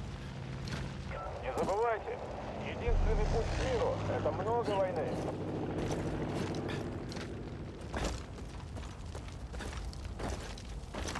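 Gunshots crack sharply, one at a time.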